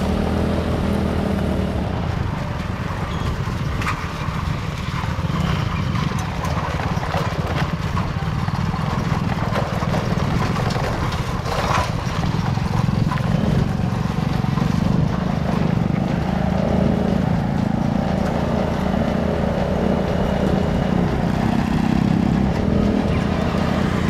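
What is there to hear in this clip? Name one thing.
Cart wheels rattle and crunch over a dirt track with dry leaves.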